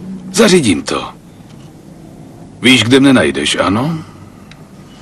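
A man speaks calmly and close by into a telephone.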